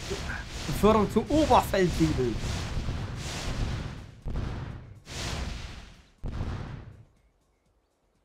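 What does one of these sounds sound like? Tank guns fire and shells explode in rapid bursts.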